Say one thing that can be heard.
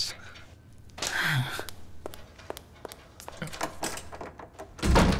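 Tools clink as a man works.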